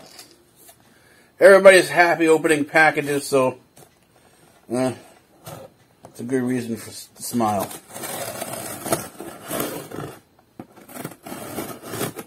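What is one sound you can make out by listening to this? Plastic packaging crinkles as it is torn open.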